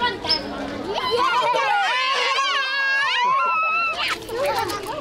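Young children laugh close by.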